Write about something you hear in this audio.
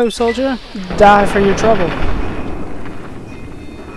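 An explosion bursts and rumbles.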